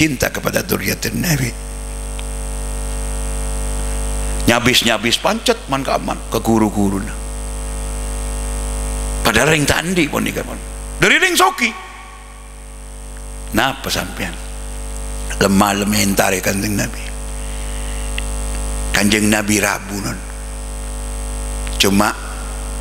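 An elderly man preaches with animation through a microphone and loudspeakers, in bursts with pauses.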